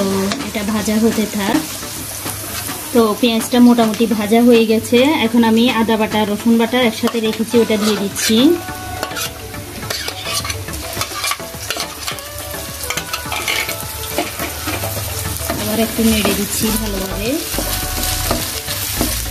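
A wooden spatula scrapes and stirs in a metal pan.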